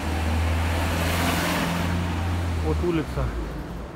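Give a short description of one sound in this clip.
A van engine idles close by with a low, steady rumble.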